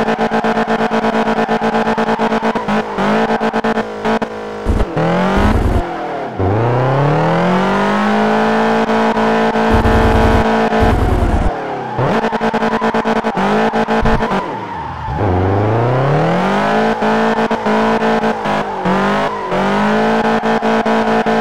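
A car engine roars, rising in pitch as it speeds up and dropping with each gear change.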